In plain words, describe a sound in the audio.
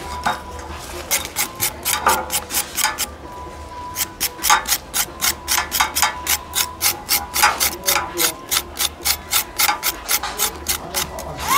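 A knife scrapes rapidly and rhythmically against a metal blade, sharpening it.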